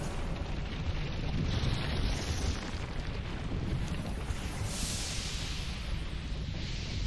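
A fiery blast roars.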